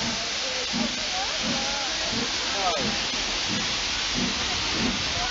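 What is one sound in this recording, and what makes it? Train wheels squeal and screech against the rails.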